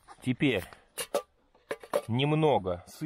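A small bottle clinks against a metal tin.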